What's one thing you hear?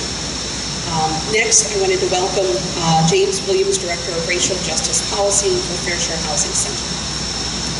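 A woman speaks into a microphone over a loudspeaker, outdoors.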